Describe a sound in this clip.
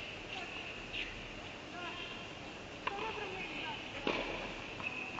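A tennis ball is struck with a racket, with a sharp pop echoing in a large hall.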